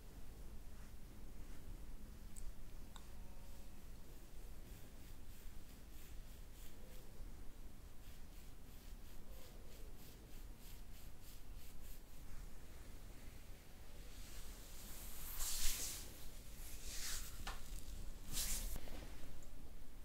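Fingers rub and rustle softly through hair, close by.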